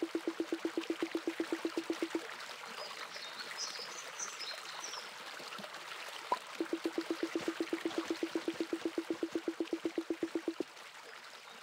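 A rapid string of soft, even electronic beeps plays.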